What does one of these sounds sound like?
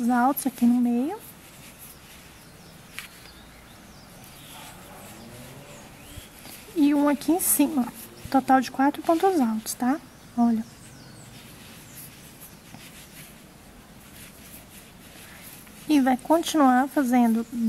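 A crochet hook softly draws yarn through loops.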